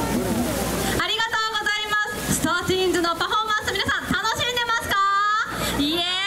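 Young girls shout and cheer loudly up close.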